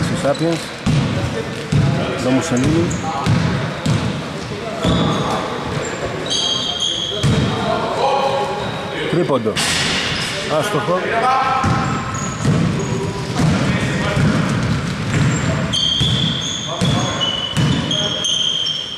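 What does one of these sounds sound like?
Men shout and call out to each other across a large echoing hall.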